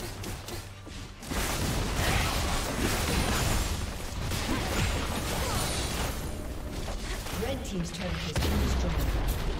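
Game spell effects whoosh, zap and crackle in a busy fight.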